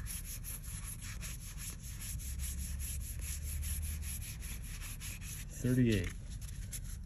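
Trading cards flick and rustle as they are shuffled through by hand.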